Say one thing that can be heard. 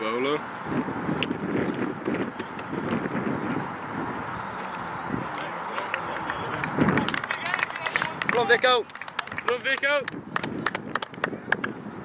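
A group of young men cheer and chatter excitedly outdoors.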